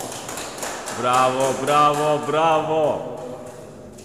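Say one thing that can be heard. A man sings a long held melody in an echoing room.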